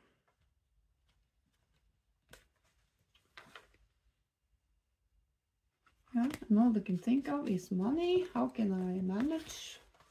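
Playing cards slide and tap softly against each other.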